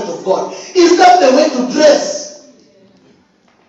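A man preaches loudly into a microphone in an echoing hall.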